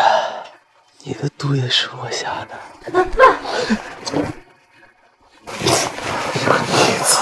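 A middle-aged man speaks tensely and angrily, close by.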